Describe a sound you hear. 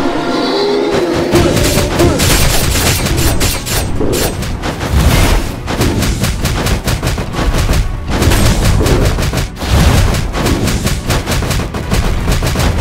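Blades swish and clang in rapid slashes.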